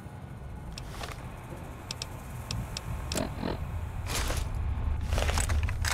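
Short electronic clicks tick as a handheld device's menu is browsed.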